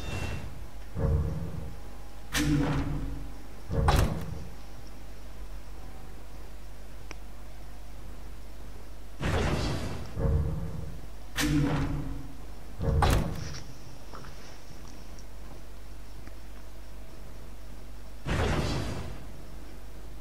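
Short menu sound effects whoosh and thud.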